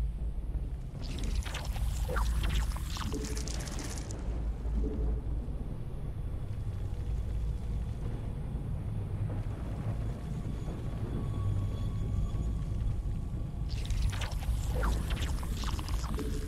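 Alien creatures screech and chitter in short bursts.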